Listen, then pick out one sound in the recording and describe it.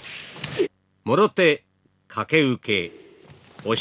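A man gives short, sharp shouts.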